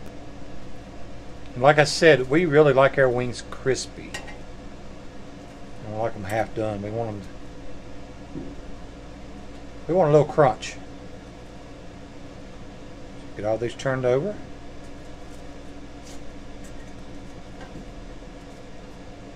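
Metal tongs clink against a metal fry basket.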